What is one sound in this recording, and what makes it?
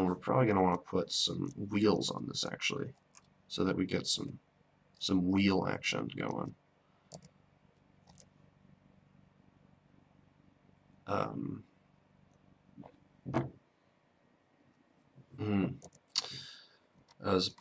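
A young man talks calmly and close to a microphone, with pauses.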